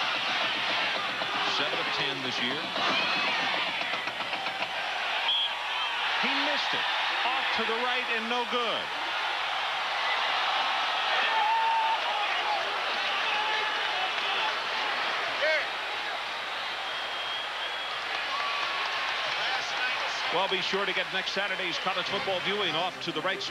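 A large stadium crowd roars and cheers loudly.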